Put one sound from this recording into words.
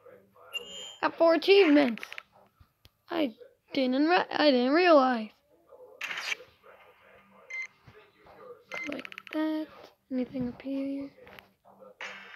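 A young boy talks and vocalizes with animation, close to a microphone.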